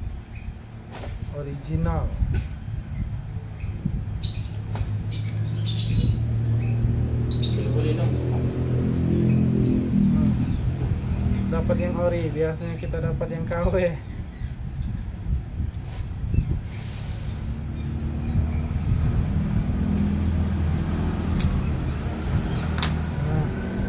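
Metal parts click and clack in a man's hands.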